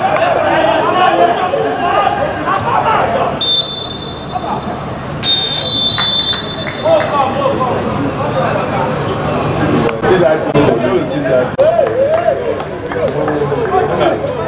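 Young male players shout to one another across an open pitch.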